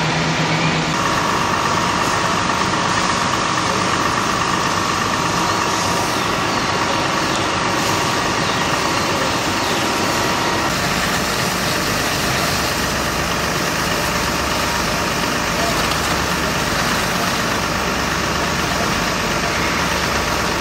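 A fire hose sprays water with a steady hiss.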